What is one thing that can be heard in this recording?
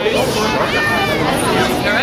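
A young woman talks with fans up close.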